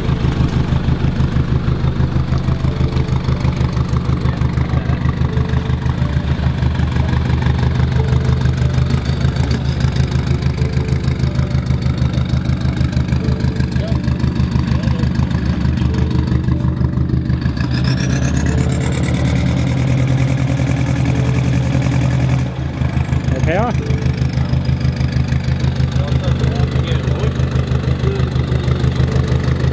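A diesel engine idles loudly nearby with a rough, throbbing exhaust.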